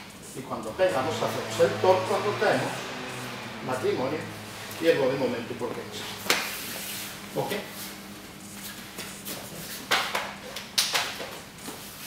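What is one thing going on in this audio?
Bare feet shuffle and thump on a hard floor.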